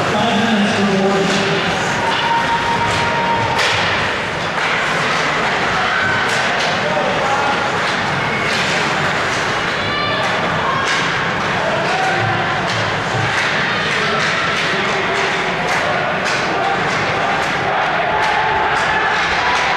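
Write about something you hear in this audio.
Ice skates scrape and hiss across ice.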